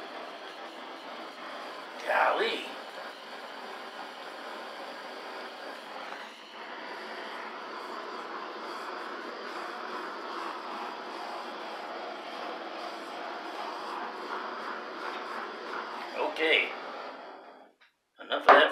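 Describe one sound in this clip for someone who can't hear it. A torch hisses steadily, then cuts off.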